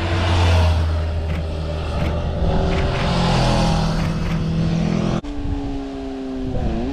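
A motorcycle engine hums steadily and shifts pitch as it speeds up.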